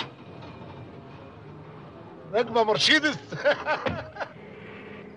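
A man laughs and talks cheerfully.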